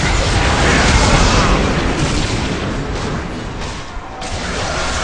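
Game spell effects crackle and blast in a fast fight.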